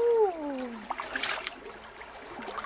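Water pours and splatters back into a stream.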